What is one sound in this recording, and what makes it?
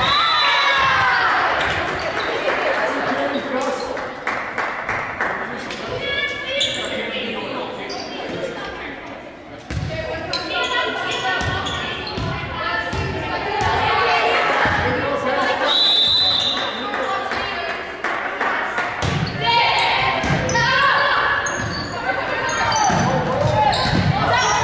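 Young women call out and shout to each other in a large echoing gym.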